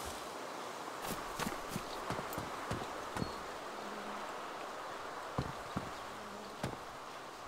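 Footsteps crunch on hard ground at a steady walking pace.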